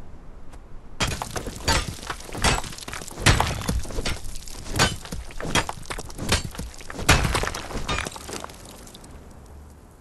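A pickaxe strikes rock again and again, chipping stone.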